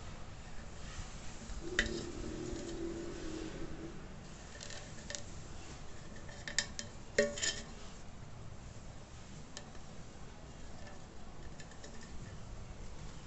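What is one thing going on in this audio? A felt-tip marker squeaks faintly across a metal can.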